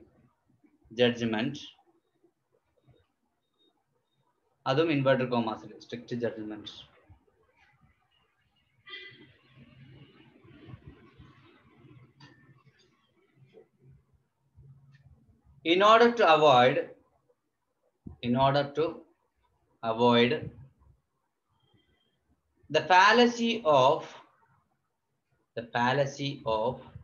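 A man speaks calmly close to the microphone, in short bursts with pauses.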